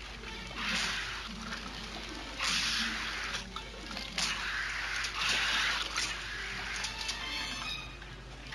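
Heavy rain hisses down in gusts.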